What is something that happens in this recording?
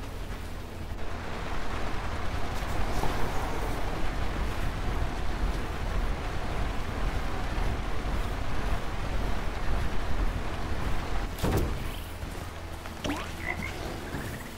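Rain falls steadily with a soft hiss.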